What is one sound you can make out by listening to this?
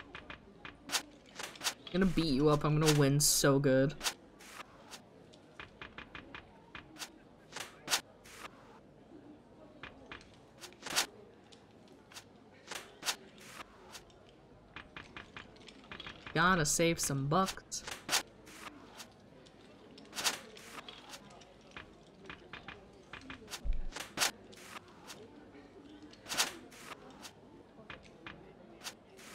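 Playing cards snap down one after another with short, sharp clicks.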